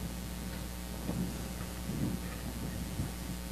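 An elderly man speaks quietly in a large echoing hall.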